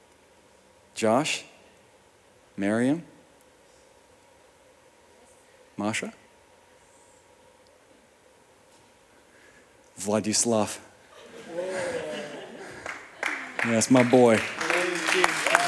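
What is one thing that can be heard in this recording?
A young man speaks in short bursts through a microphone.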